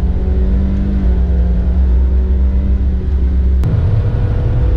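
A car engine's pitch climbs and drops sharply as the gears shift.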